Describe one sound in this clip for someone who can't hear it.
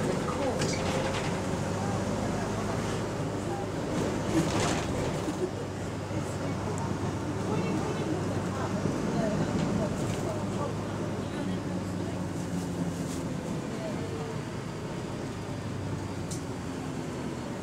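A bus engine hums steadily from inside.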